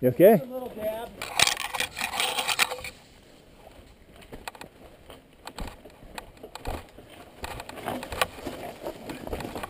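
Mountain bike tyres roll and crunch over dry leaves and rocks.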